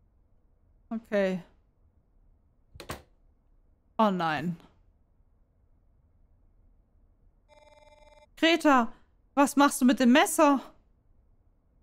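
A young woman speaks in short bursts into a close microphone.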